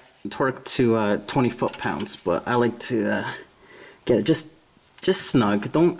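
A ratchet wrench clicks as it loosens a bolt.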